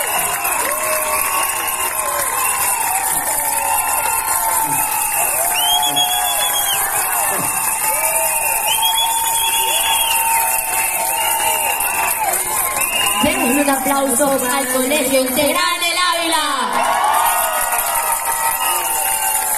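Music plays loudly through outdoor loudspeakers.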